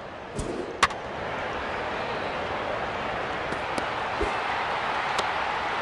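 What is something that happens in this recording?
A stadium crowd roars.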